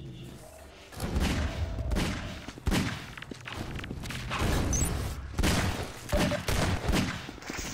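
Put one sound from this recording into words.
Revolver shots bang loudly and echo.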